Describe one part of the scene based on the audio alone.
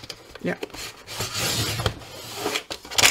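A paper trimmer blade slides along, cutting through paper.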